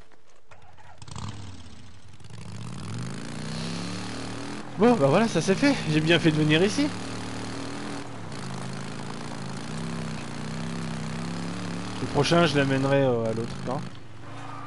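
A motorcycle engine hums steadily as the bike rides along a dirt road.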